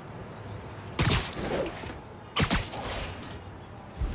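Bursts of air whoosh past during fast leaps.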